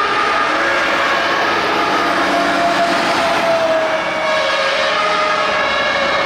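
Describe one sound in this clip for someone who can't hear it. A heavy fire engine's motor rumbles as it drives past.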